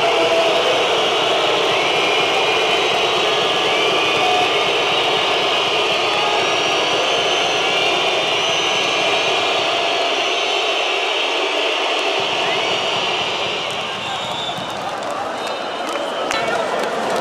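A large crowd chants and cheers loudly in a big echoing arena.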